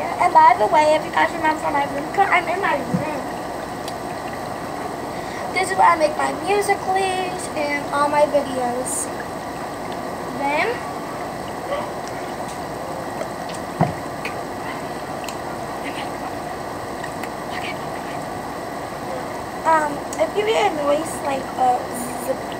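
A young girl sings and talks with animation close by.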